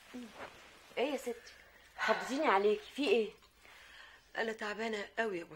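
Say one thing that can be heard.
A middle-aged woman speaks calmly and closely.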